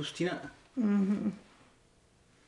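An elderly woman speaks briefly and calmly nearby.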